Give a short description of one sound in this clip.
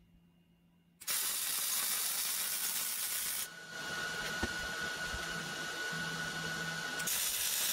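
An arc welder hisses and crackles steadily.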